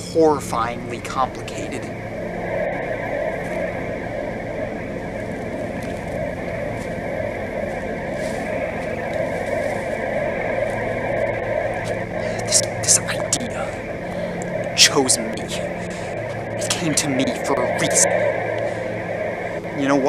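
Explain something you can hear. A young man talks close by, with animation.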